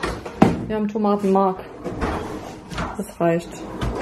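A cabinet pull-out slides open.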